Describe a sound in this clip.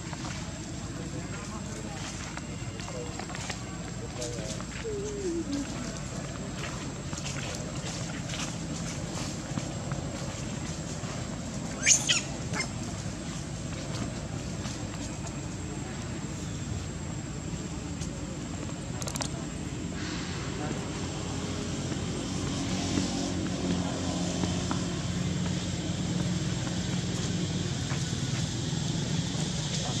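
Small monkeys scamper and shuffle over dry leaves on dirt ground.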